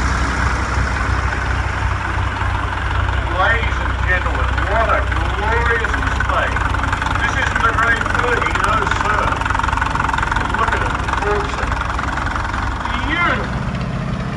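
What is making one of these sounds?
A vintage tractor engine chugs steadily as the tractor drives slowly past.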